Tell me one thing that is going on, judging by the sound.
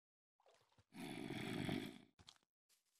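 A zombie groans low nearby.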